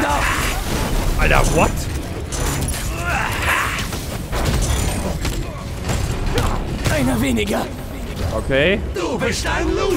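Game fighting sounds crash and whoosh.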